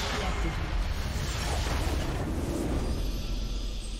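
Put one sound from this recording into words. A game structure explodes with a loud, deep rumbling blast.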